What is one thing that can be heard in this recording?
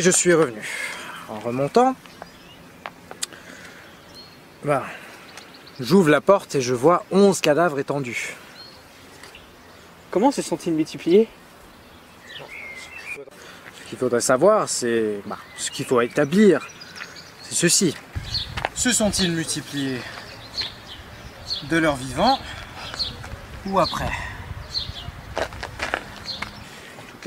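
A young man speaks calmly and slowly, with pauses.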